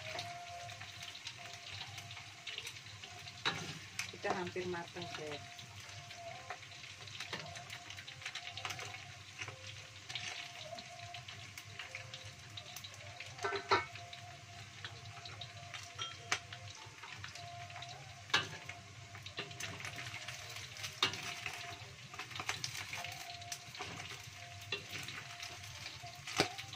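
Oil sizzles and crackles steadily in a hot wok.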